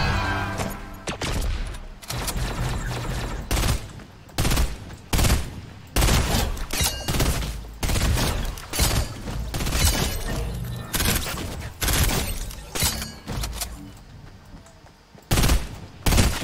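A rifle fires loud shots in quick bursts.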